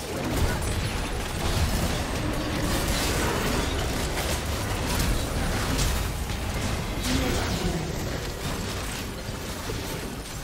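Game spells blast and crackle in a fast fight.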